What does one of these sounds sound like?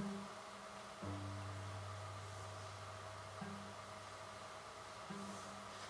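A cello plays a low, soft note.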